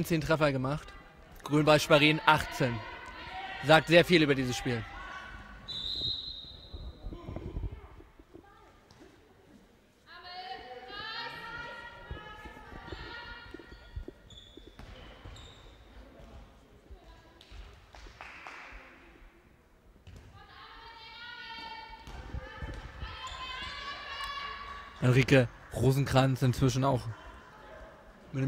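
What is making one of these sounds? A handball bounces on a hard floor.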